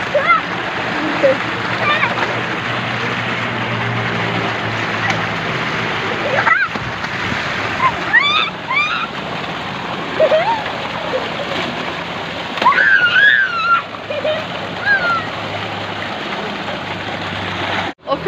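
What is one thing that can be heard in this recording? Water gushes from a pipe and splashes into a pool.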